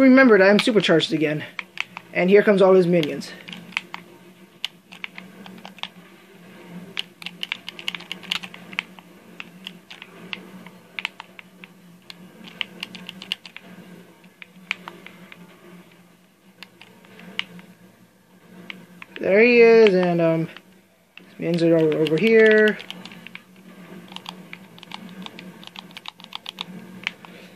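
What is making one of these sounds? Gunfire crackles from a video game through a television speaker.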